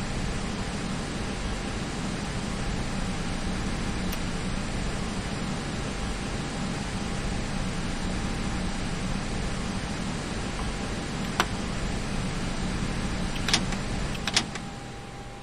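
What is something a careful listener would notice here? A jet engine hums steadily with a low rumble, then falls quiet.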